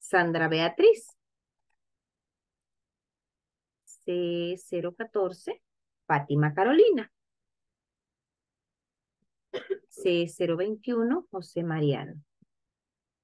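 A young woman speaks calmly into a microphone, explaining in short phrases.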